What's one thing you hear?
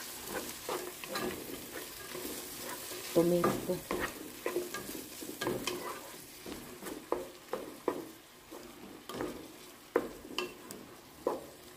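Vegetables sizzle softly in hot oil.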